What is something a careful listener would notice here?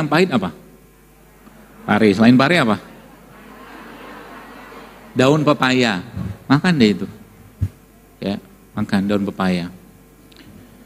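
A middle-aged man speaks calmly and slowly into a close microphone, with pauses.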